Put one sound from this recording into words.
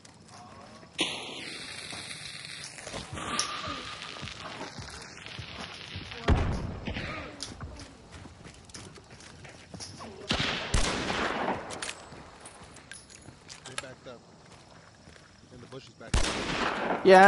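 Gunshots fire loudly and echo.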